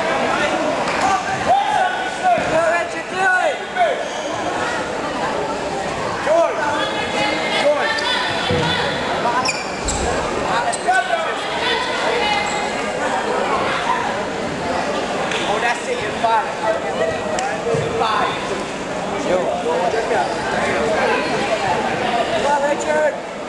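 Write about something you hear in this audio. A crowd of spectators shouts and cheers in a large echoing gym.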